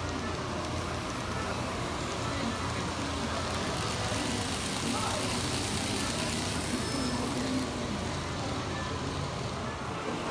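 A model train rattles and hums along its tracks.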